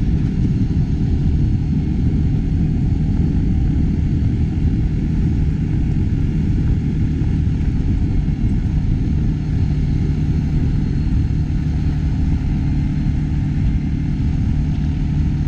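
Tyres crunch and rumble over gravel.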